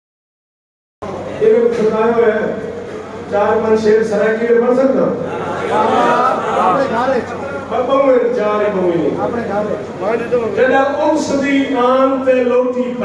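A man recites verses with feeling into a microphone, heard through loudspeakers in an echoing hall.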